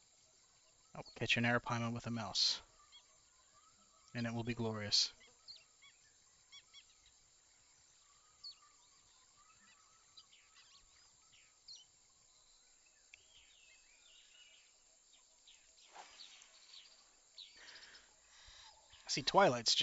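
A man speaks into a microphone in short bursts, with animation.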